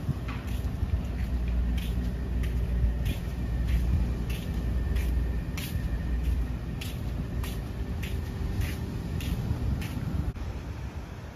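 Footsteps tap steadily on a paved path.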